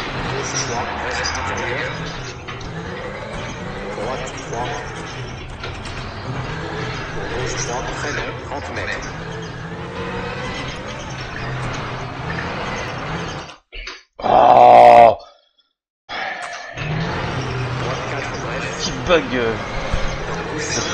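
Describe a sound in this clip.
A rally car engine roars and revs as the car speeds along.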